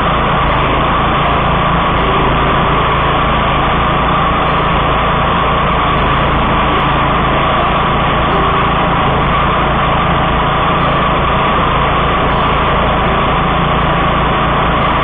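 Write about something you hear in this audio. Tall grass and brush are cut and thrashed by the mower blades.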